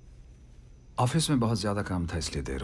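A middle-aged man speaks nearby.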